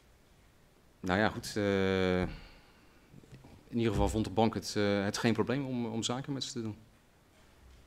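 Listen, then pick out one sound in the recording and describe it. A middle-aged man answers calmly into a microphone.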